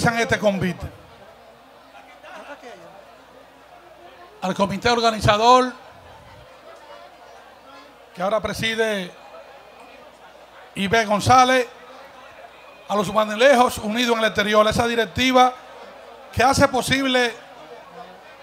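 An older man speaks loudly into a microphone over a loudspeaker, in short bursts, outdoors.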